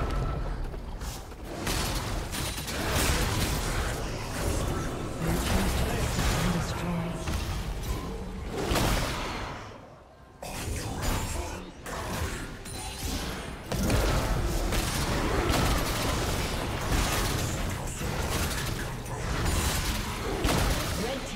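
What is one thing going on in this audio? Fast game combat effects crackle, whoosh and explode.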